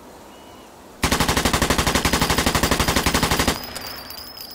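A submachine gun fires a long rapid burst.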